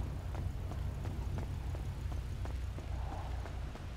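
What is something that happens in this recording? A car engine hums nearby.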